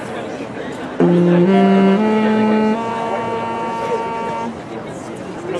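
A school band plays a few long, held notes together.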